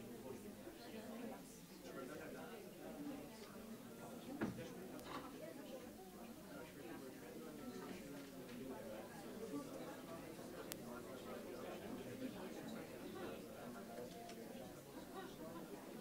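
An audience murmurs quietly in a large, echoing hall.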